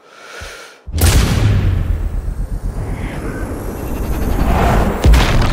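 A bullet whooshes through the air with a deep rushing roar.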